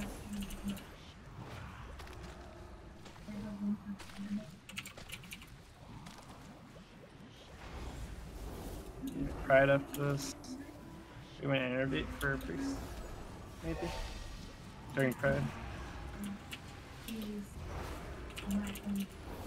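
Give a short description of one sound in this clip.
Magic spells crackle and chime in a fight.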